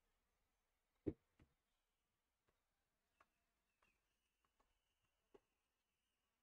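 A tennis ball bounces a few times on a hard court.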